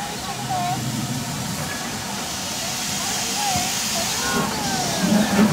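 A steam locomotive rolls slowly closer, chuffing and rumbling.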